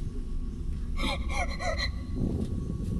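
A man speaks sharply outdoors.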